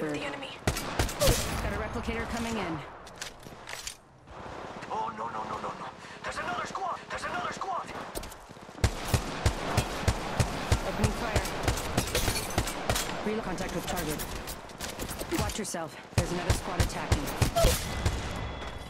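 Gunshots fire rapidly in bursts.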